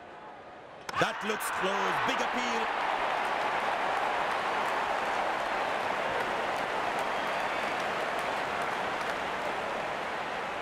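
A stadium crowd cheers and roars loudly.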